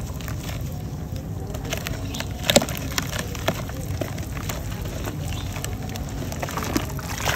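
Wet chalky clumps crumble and crunch between hands.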